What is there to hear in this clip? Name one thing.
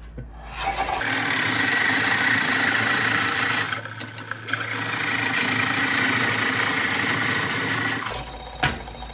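A wood lathe hums as it spins.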